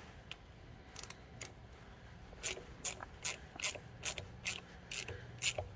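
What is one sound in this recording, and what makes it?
A ratchet wrench clicks in slower, spaced strokes.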